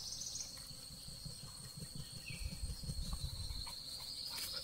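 A dog scratches itself with its hind leg.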